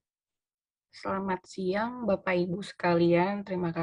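A second woman speaks over an online call.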